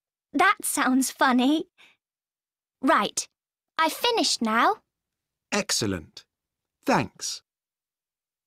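A woman speaks clearly in short, separate phrases over an online call.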